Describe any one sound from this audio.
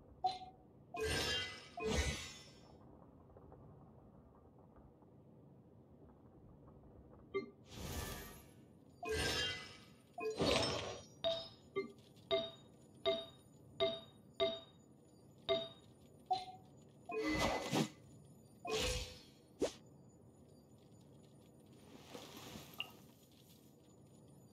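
Soft magical whooshes swell and fade.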